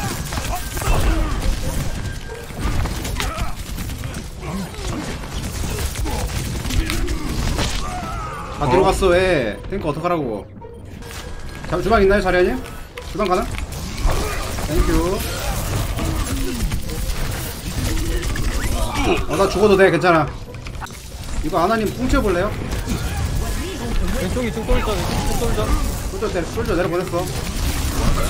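Game gunfire and effects crackle steadily.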